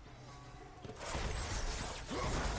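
Blades slash and clash in a fight.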